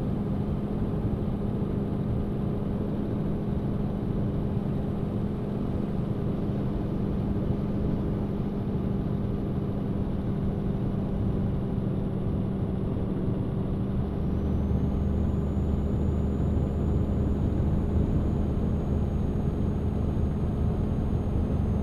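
Tyres roll on a smooth road.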